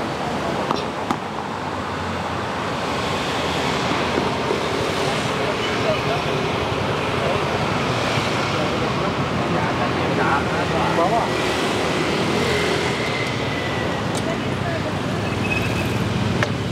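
Traffic hums along a city street outdoors.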